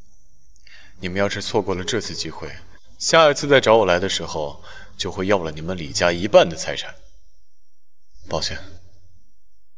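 A young man speaks calmly and firmly, close by.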